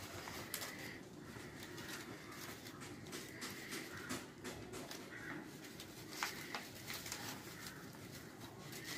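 Stiff paper rustles and crinkles as it is folded.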